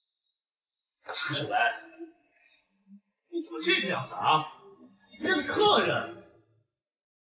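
A man speaks sternly nearby.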